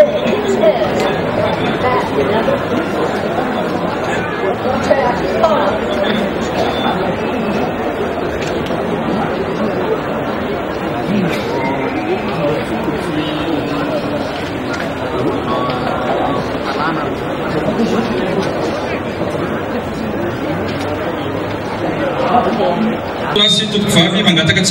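A large stadium crowd murmurs and chatters steadily outdoors.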